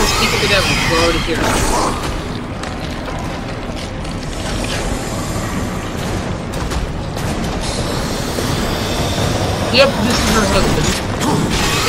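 A heavy low rumble fills an echoing cavern.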